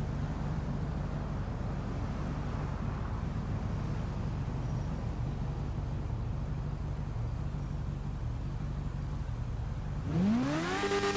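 A motorcycle engine idles with a low, steady rumble.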